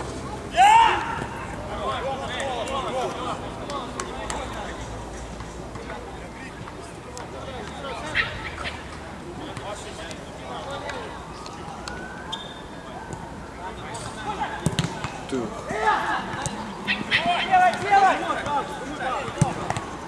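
A football thuds off a player's foot.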